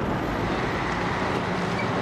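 A car engine idles nearby.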